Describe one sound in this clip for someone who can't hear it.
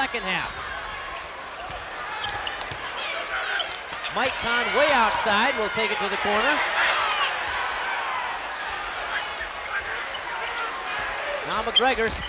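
A large crowd murmurs and cheers in an echoing gym.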